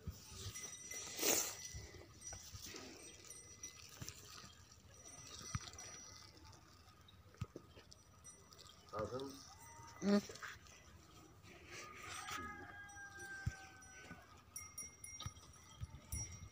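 A plastic sleeve crinkles and rustles against a cow's hide.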